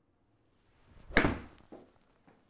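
A golf club strikes a ball with a sharp thwack.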